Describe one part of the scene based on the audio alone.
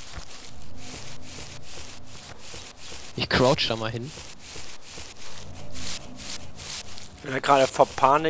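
A person crawls through grass with a steady, rhythmic rustling.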